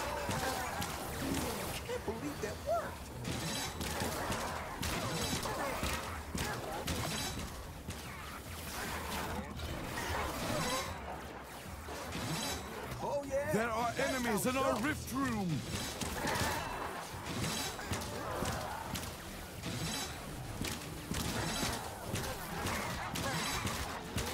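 A sword slashes and clangs against monsters.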